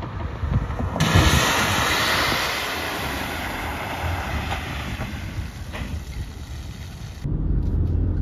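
Tyres hiss and spray water across a wet road surface.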